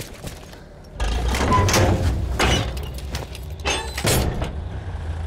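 Metal clanks and bangs loudly a few times.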